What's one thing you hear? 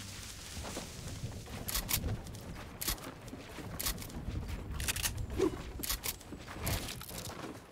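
Wooden walls snap into place with quick clacks.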